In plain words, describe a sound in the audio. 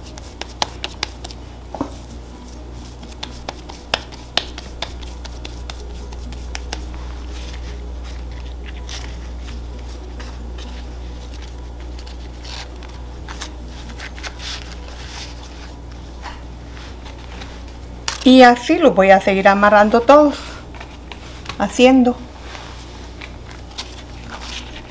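Dry corn husks crinkle and rustle under hands.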